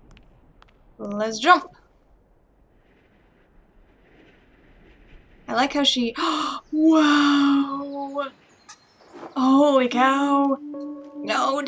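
A young woman exclaims and talks with animation close to a microphone.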